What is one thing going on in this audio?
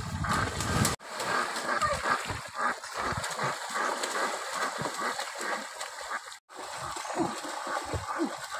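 Water churns and splashes as a boy swims fast across a river.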